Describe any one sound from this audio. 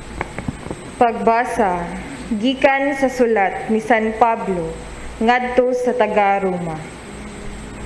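A woman speaks steadily into a microphone in an echoing hall.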